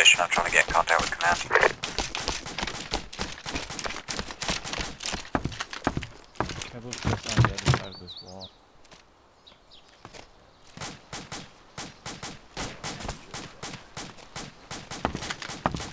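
Footsteps thud on a hard floor at a quick pace.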